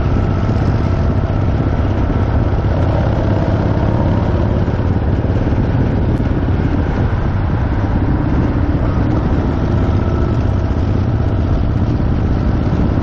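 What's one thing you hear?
A motorcycle engine rumbles steadily at speed.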